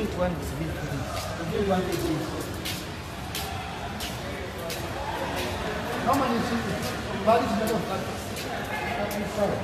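Footsteps tap on a concrete floor at a walking pace.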